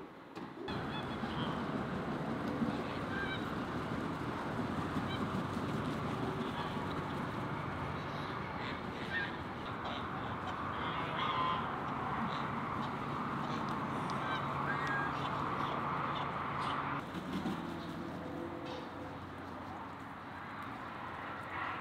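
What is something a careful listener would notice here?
Domestic geese honk outdoors.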